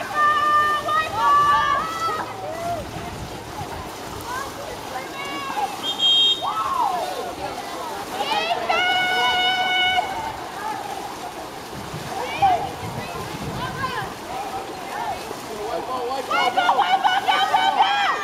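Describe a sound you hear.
Swimmers splash and thrash in water.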